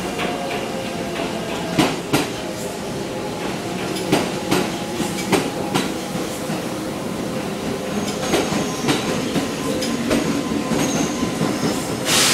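Train wheels clatter and click over rail joints.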